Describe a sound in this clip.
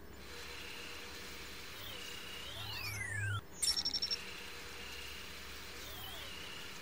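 An electronic scanner gives off a thin steady tone that slides up and down in pitch.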